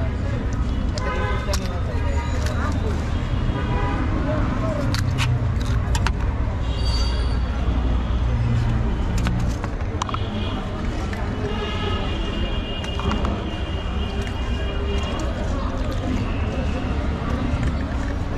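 A metal spoon clinks against a steel pot.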